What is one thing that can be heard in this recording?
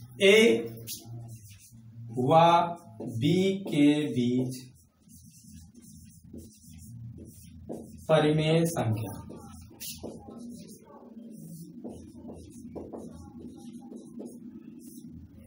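Chalk scratches and taps on a board.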